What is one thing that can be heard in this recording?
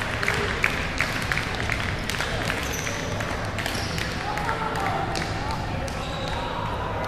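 Shuttlecocks are struck with rackets, giving sharp pops that echo in a large hall.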